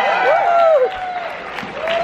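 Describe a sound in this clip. An audience claps.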